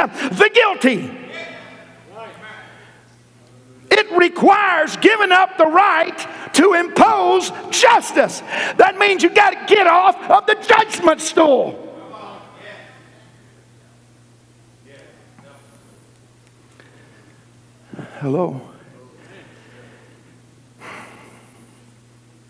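A middle-aged man preaches with animation through a microphone in a large echoing hall.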